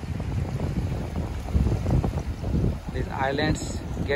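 Shallow water laps gently over wet sand.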